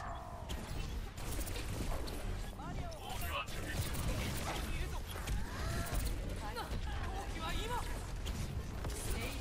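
Energy blasts whoosh and explode.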